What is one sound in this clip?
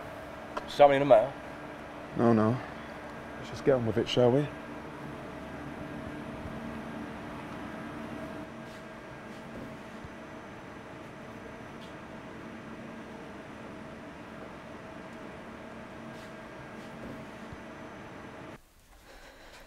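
Machinery hums steadily in a large hall.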